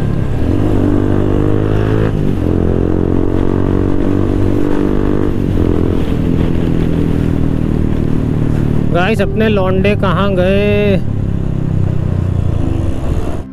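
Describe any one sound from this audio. A motorcycle engine hums close by, rising in pitch and dropping with each gear change.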